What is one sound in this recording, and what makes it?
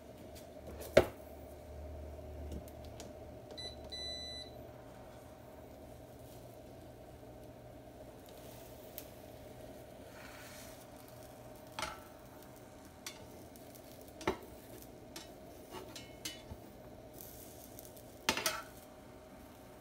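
A metal spatula clicks and scrapes against a pan.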